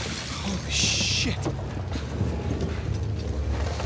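A man mutters in surprise close by.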